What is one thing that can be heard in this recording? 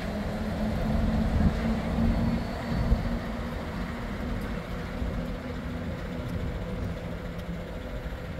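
A monorail train hums as it glides past overhead.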